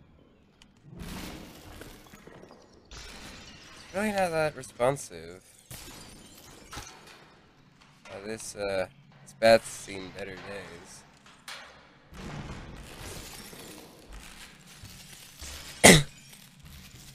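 Glass-like shards shatter with sharp crashes, again and again.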